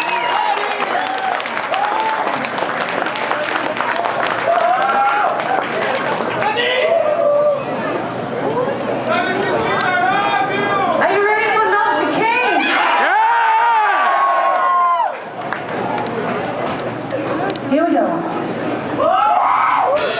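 A woman sings into a microphone over loud band music.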